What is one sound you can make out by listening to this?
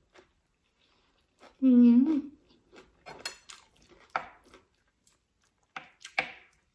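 A young woman chews food noisily with smacking sounds.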